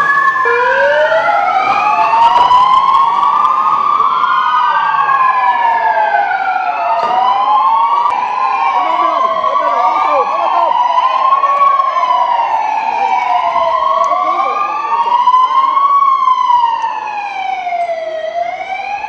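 Several police sirens wail loudly, rising and falling over one another.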